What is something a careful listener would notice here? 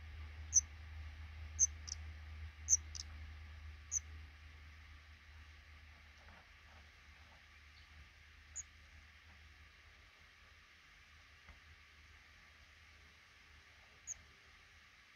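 Baby birds in a nest give short, high peeps now and then.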